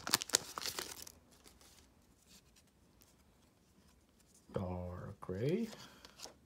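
Trading cards rustle and slide against each other as they are shuffled.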